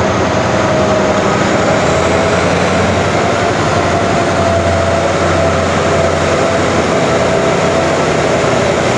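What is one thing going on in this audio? A diesel locomotive rumbles as it pulls a train slowly into an echoing station.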